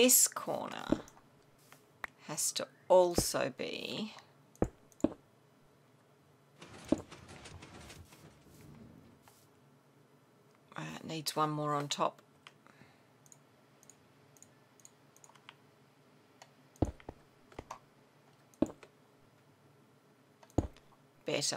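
Stone blocks are set down with short dull knocks.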